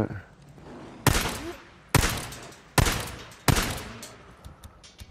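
Pistol shots ring out one at a time, each echoing briefly.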